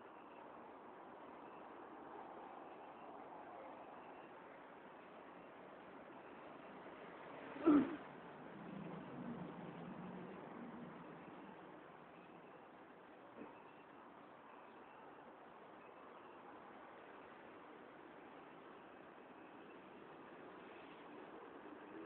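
A low, steady murmur of a busy covered walkway carries on throughout.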